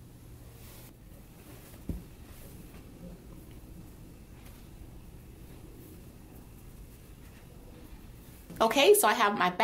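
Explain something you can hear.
Fabric rustles softly as it is handled.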